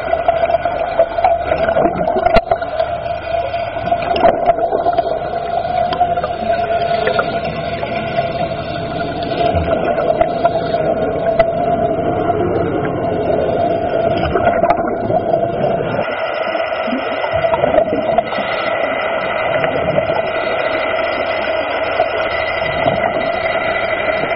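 Water swirls and bubbles close by, heard underwater.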